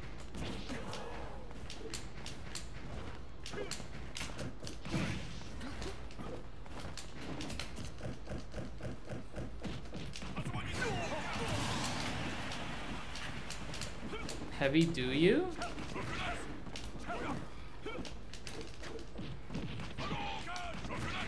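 Video game fighters land punches and kicks with sharp hits.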